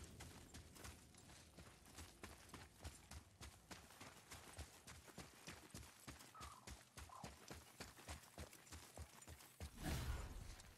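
Heavy footsteps crunch quickly on dirt.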